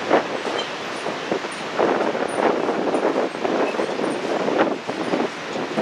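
Footsteps clatter on a metal suspension bridge.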